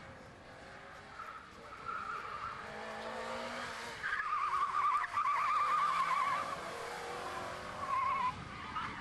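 A car engine revs hard as it races past.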